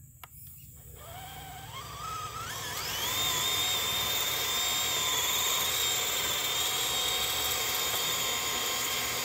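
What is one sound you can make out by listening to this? A small electric motor whines, rising in pitch and then holding steady.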